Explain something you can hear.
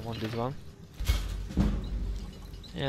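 A hammer clangs on metal a few times.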